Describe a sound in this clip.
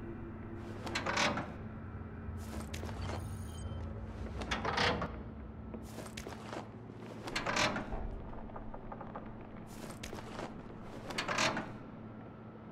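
Metal locker doors creak and clang open.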